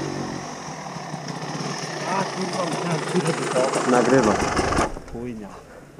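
A dirt bike engine buzzes and revs as it approaches up close.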